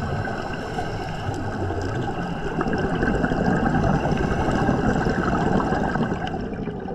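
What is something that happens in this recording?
Faint crackling ticks sound underwater.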